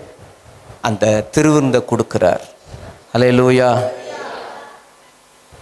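A man speaks with animation through a microphone, echoing in a large hall.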